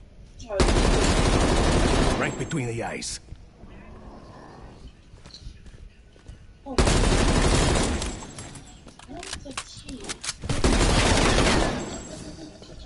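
Gunfire rattles in loud rapid bursts.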